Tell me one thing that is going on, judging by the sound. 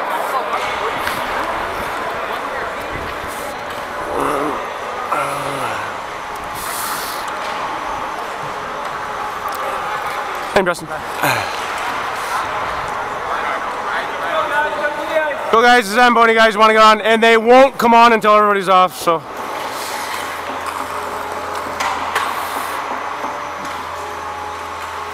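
Skate blades scrape and hiss across the ice in a large echoing rink.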